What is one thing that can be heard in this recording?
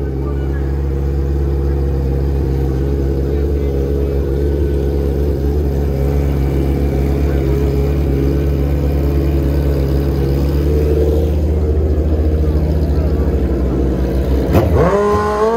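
A motorcycle engine idles with a loud, deep rumble.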